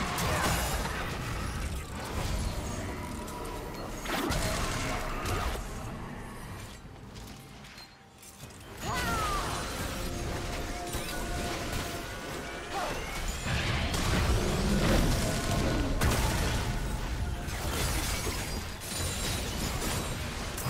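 Video game spells and attacks crackle, whoosh and boom in a busy fight.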